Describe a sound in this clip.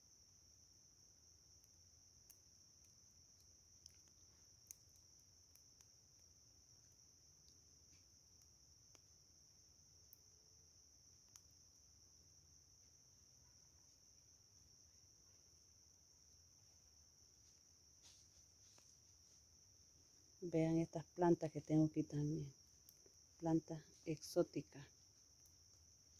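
Embers crackle faintly now and then.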